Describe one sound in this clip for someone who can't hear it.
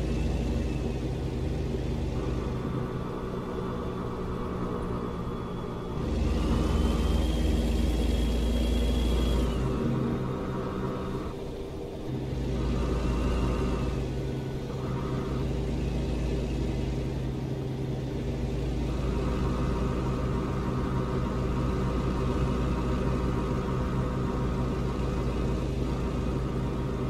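A truck engine drones steadily while driving.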